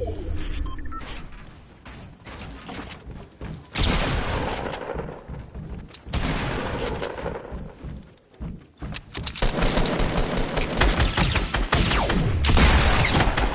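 Wooden walls and ramps clatter into place in quick succession.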